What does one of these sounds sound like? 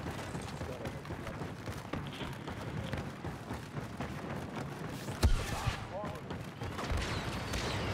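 Heavy footsteps run across a metal floor.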